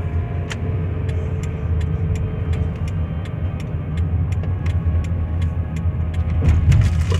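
Tyres roll on the road.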